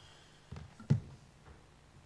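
A microphone thumps as it is handled at a lectern.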